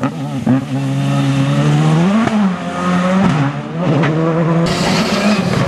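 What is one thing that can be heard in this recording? A rally car engine roars and revs hard, rising and falling in pitch as it shifts gears.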